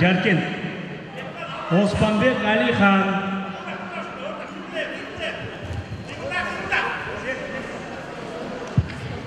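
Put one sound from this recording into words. Spectators shout and cheer in an echoing hall.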